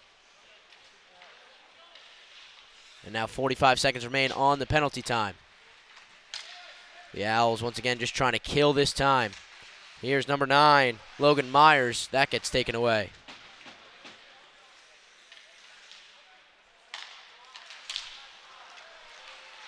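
Ice skates scrape and hiss across the ice in a large echoing rink.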